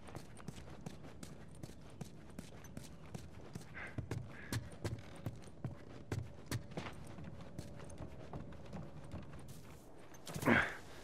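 Footsteps thud steadily across a floor.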